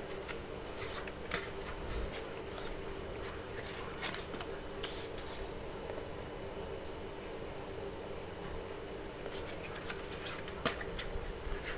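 Cards tap and slide softly on a table.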